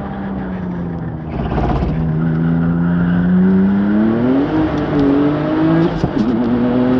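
A car engine roars loudly from inside as it accelerates, rising in pitch through the gears.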